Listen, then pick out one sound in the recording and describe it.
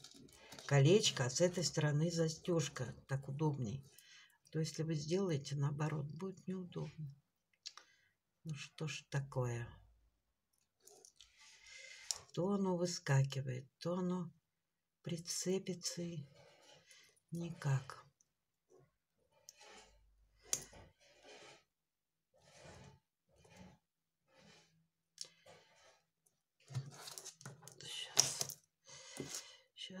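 Small beads click softly against one another.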